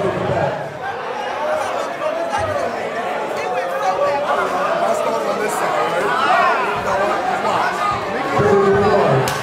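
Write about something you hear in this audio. A crowd chatters and cheers in the background.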